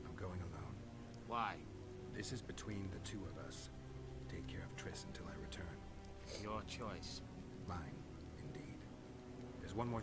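A younger man answers in a low, quiet voice.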